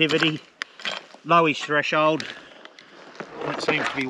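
A pick scrapes and thuds into stony dirt.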